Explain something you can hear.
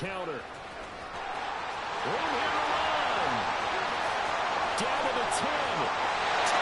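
A large stadium crowd swells into a loud roar and cheers.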